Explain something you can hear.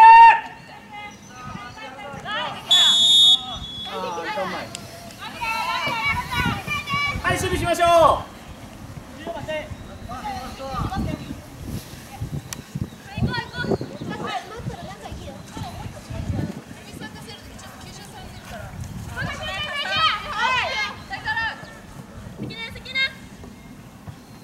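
Young women shout and call to each other across an open field outdoors.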